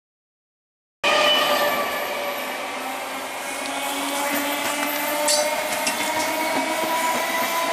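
A train's wheels squeal on the rails.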